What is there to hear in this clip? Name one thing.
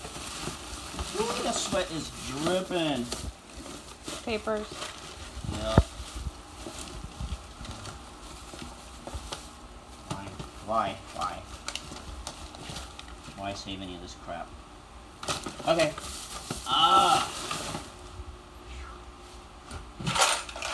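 A plastic bag rustles and crinkles close by as it is handled.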